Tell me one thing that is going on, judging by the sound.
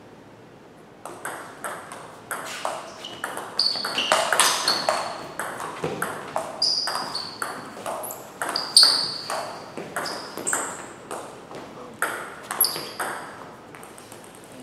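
A ping-pong ball clicks rapidly back and forth off paddles and a table in an echoing hall.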